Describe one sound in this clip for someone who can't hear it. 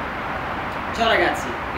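A young man speaks cheerfully, close by.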